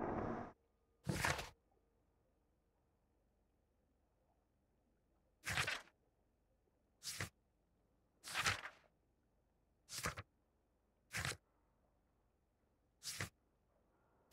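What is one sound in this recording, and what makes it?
Book pages flip over with a quick papery swish, again and again.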